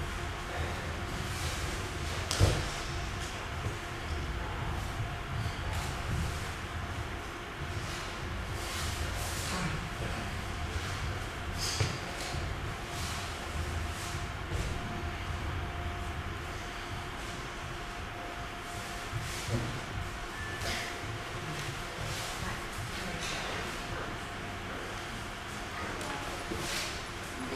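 Bodies thud and shuffle on a padded mat.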